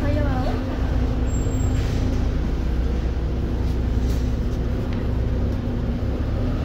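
A bus body rattles and creaks while driving.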